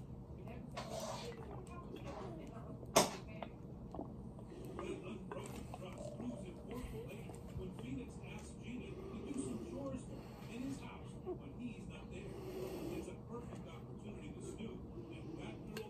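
A boy gulps down a drink close by.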